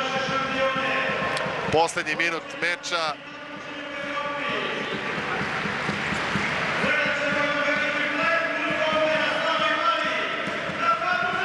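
A large crowd chants and sings loudly in an echoing indoor hall.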